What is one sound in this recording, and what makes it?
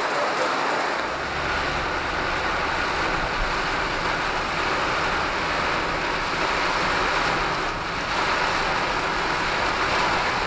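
Rain drums on a car windscreen.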